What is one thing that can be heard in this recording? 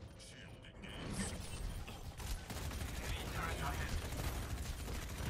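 Energy weapons buzz and crackle in a video game.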